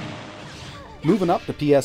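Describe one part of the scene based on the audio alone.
Sharp blows strike in quick bursts.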